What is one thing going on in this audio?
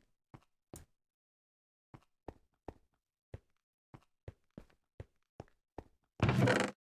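Footsteps tap on stone at an even pace.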